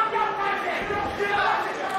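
A boxing glove thuds against a body.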